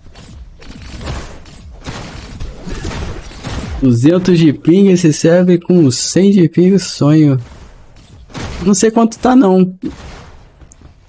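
Video game combat sounds clash and bang.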